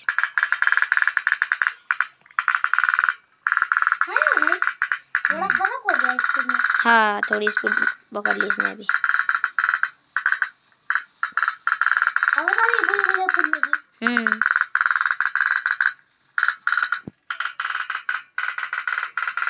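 A toy steam boat putters with a rapid popping rattle.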